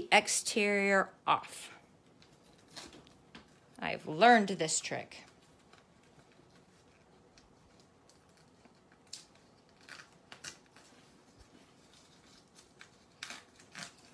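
Paper and plastic rustle and crinkle under hands.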